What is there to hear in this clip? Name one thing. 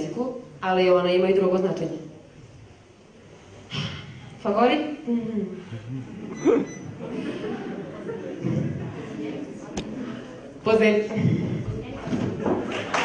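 A young woman sings into a microphone through loudspeakers in an echoing hall.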